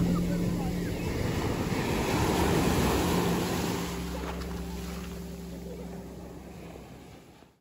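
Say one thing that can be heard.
Waves crash and wash over the shore, then fade.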